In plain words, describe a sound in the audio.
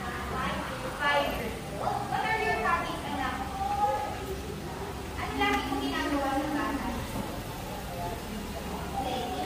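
A woman speaks to children.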